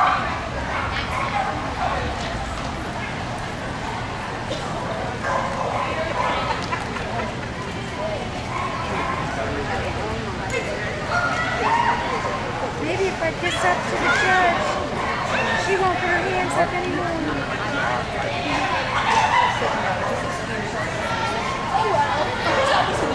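A woman calls out commands and praise to a dog with animation.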